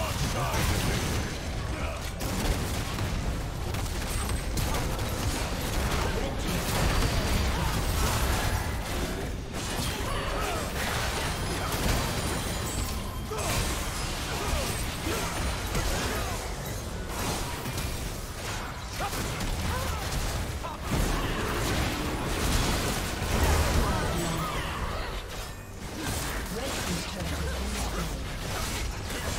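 Spell effects and weapon hits crackle and clash in a busy fight.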